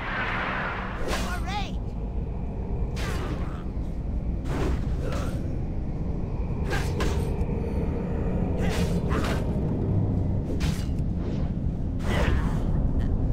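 Sharp metallic weapon strikes ring out repeatedly in a fight.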